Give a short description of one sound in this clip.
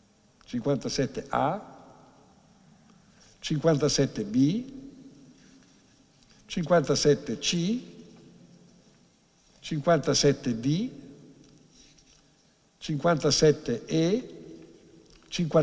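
An elderly man speaks calmly into a microphone in short phrases, in a room with some echo.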